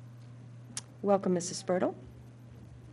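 A woman speaks briefly through a microphone.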